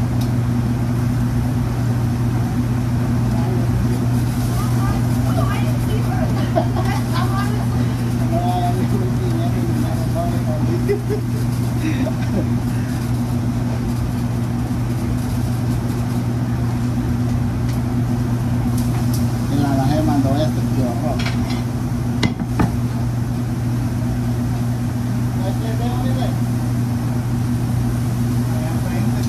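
A loud kitchen exhaust hood hums steadily.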